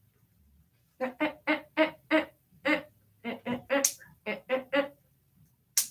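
A small dog yaps repeatedly in quick bursts.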